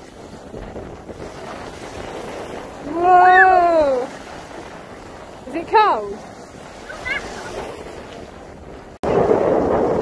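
Small waves lap onto a sandy shore.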